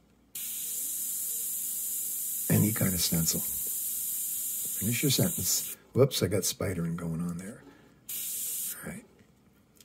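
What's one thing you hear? An airbrush hisses steadily as it sprays.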